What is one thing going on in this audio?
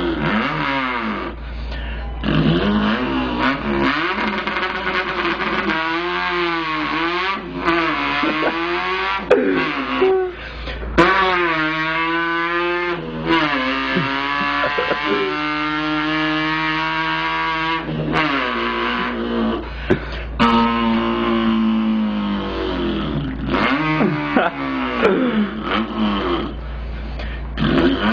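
A young man sings loudly and with feeling, close by.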